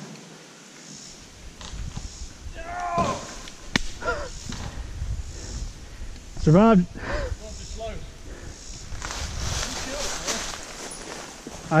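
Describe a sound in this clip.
A dirt bike engine putters quietly up close.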